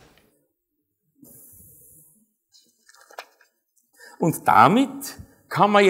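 Paper pages rustle as a man leafs through notes.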